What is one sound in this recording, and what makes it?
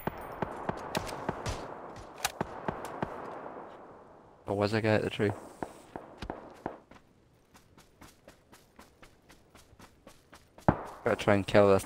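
Footsteps rustle quickly through grass.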